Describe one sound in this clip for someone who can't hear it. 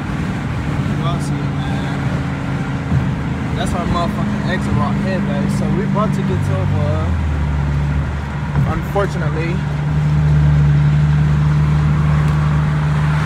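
A car engine drones steadily, its pitch shifting as it holds speed.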